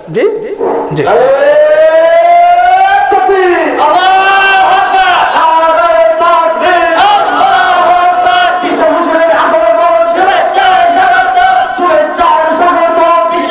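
A man chants in a long, drawn-out melodic voice into a microphone.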